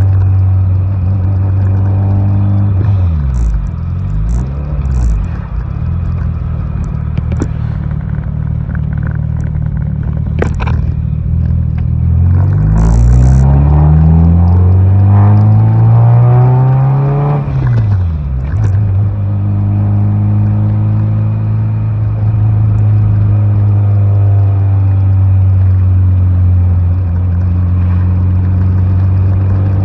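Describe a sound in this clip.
A car engine drones from inside the car, rising in pitch as it speeds up and dropping as it slows.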